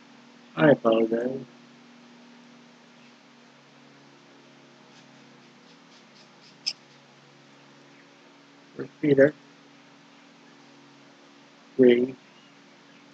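A man speaks briefly and calmly into a microphone, with long pauses.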